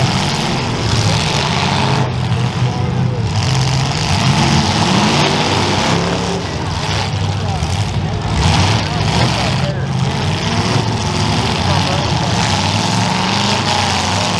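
Car engines rev and roar loudly.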